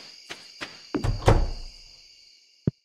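A door opens with a thud.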